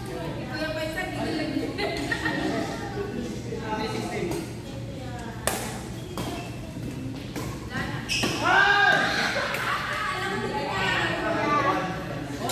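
Rackets hit a shuttlecock with sharp pops in a large echoing hall.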